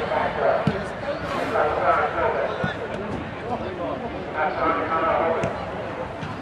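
A crowd of spectators shouts and cheers nearby.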